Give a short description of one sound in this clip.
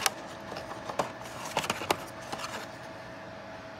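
Plastic packaging rustles and clicks as a hand handles it.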